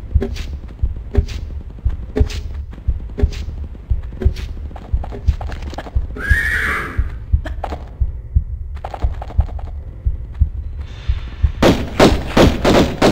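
Footsteps thud quickly and steadily.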